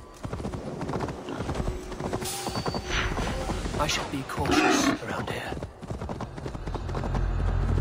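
A horse's hooves thud as it gallops.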